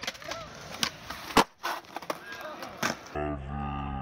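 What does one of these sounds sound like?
A skateboard slams down onto concrete.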